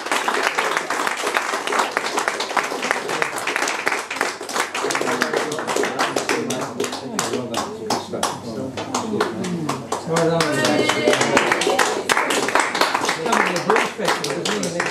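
An acoustic guitar is strummed along.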